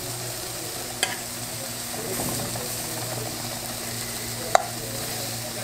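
A metal fork clicks against a frying pan.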